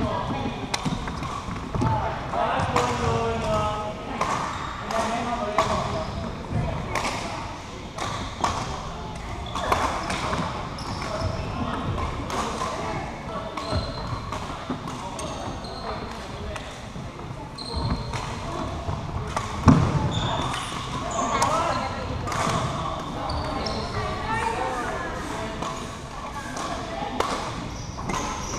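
Shuttlecocks are struck sharply by rackets again and again in a large echoing hall.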